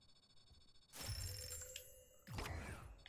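Game coins jingle as rewards are counted up.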